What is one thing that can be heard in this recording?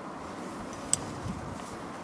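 A man handles a climbing rope with a soft rustle.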